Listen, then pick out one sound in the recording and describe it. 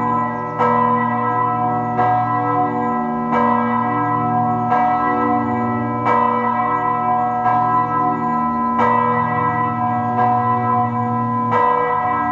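Church bells ring in a slow, steady peal, each stroke ringing on.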